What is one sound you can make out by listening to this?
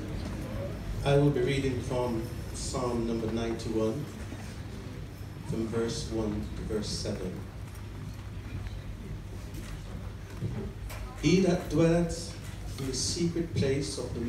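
An elderly man speaks slowly into a microphone over loudspeakers in a large echoing hall.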